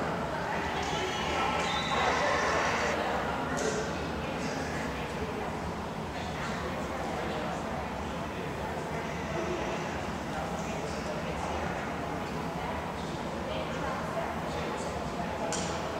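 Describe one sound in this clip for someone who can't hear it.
A group of girls chatters in a large echoing gym.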